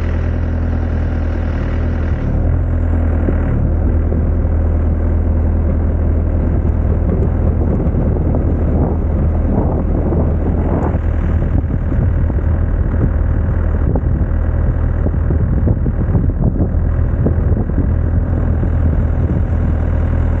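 Hydraulics whine as an excavator arm moves.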